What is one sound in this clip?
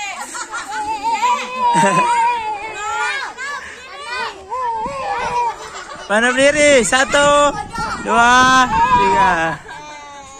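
A toddler laughs and babbles close by.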